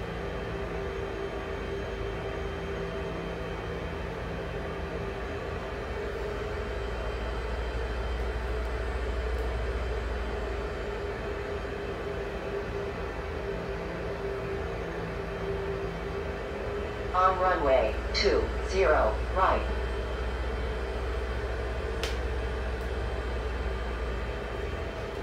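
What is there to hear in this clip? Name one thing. A jet engine hums steadily at low power.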